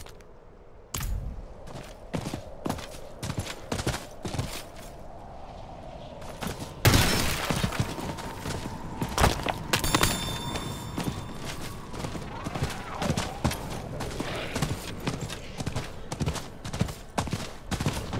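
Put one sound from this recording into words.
Hooves clop quickly on hard ground as a horse gallops.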